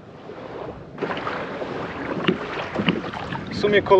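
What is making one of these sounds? Water laps and splashes around a kayak.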